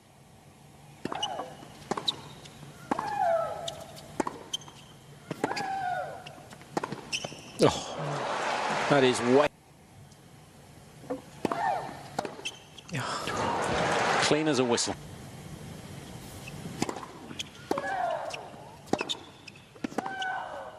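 A tennis ball is struck hard by rackets.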